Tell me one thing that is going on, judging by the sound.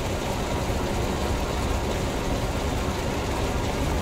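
Sparks crackle and hiss from broken machinery.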